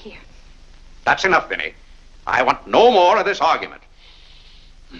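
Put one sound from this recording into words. A man speaks sharply in reply.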